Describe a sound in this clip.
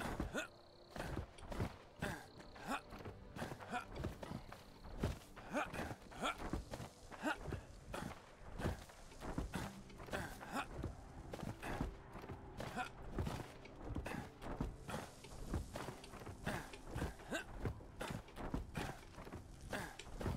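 Quick footsteps patter over soft ground at an even pace.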